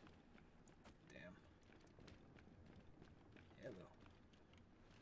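A man talks quietly into a close microphone.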